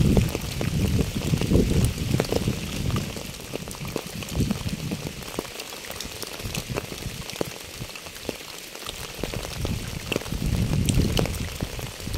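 Rain patters steadily on wet pavement and puddles.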